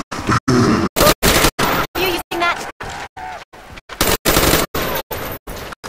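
A gun fires in loud, short bursts.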